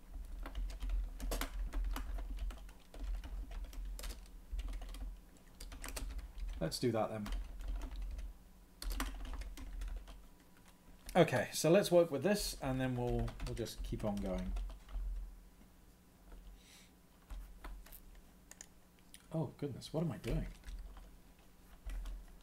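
Computer keys click in quick bursts.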